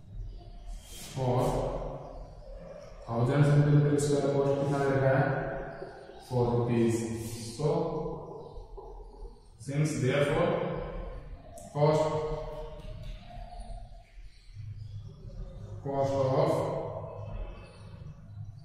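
A young man speaks calmly in a slightly echoing room.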